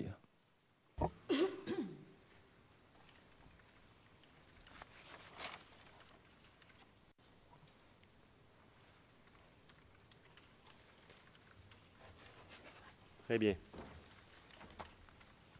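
A second man speaks softly through a microphone, with long pauses.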